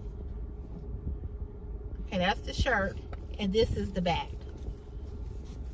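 A garment's fabric rustles as it is handled.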